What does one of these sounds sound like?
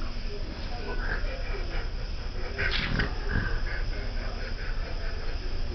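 A small kitten hisses and mews softly close by.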